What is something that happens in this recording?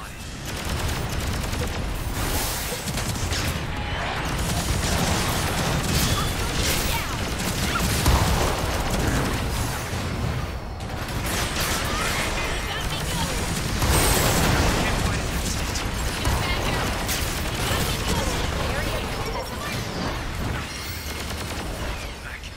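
Energy weapon shots fire in rapid bursts.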